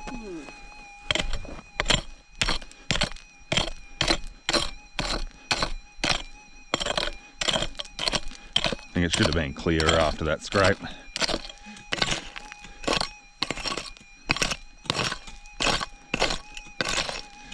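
A pick strikes hard soil again and again.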